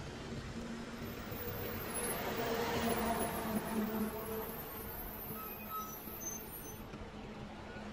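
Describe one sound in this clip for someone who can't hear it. A truck engine rumbles as the truck slowly drives past close by.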